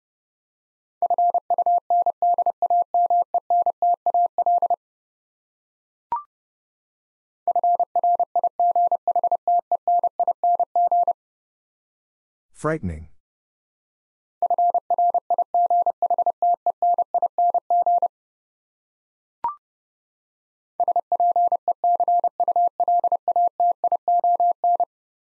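Morse code beeps in quick, even bursts from a telegraph key.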